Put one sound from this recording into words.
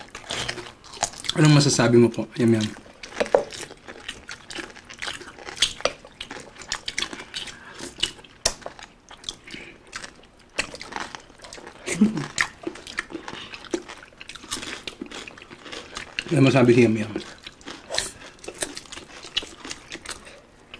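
Mouths chew and smack loudly, close to a microphone.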